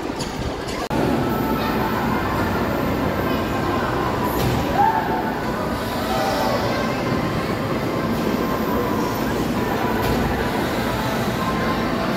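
Riders on a swinging ride shout and scream.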